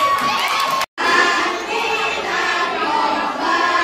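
Teenage girls sing and clap together.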